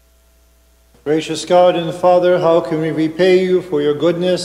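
A man chants loudly through a microphone in an echoing hall.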